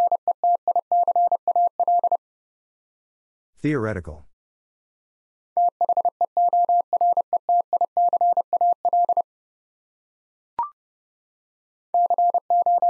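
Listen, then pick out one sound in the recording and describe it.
A Morse code key beeps out a steady high tone in quick short and long bursts.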